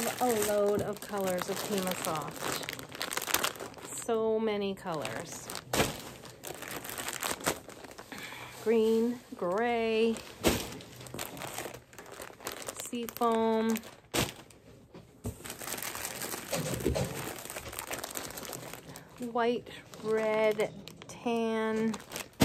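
Plastic wrapping crinkles in a woman's hands.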